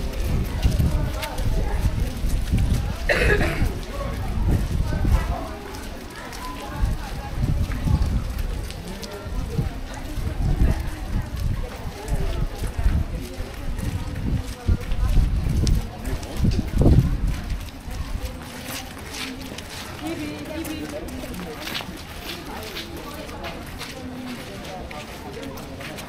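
People chatter in the distance outdoors.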